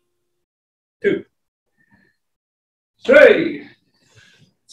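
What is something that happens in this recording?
Men hum short notes to find the pitch.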